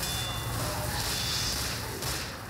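Flames roar and crackle close by.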